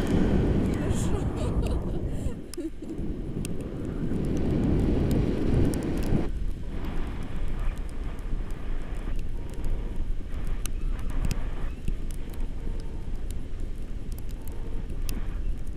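Strong wind rushes and buffets a nearby microphone.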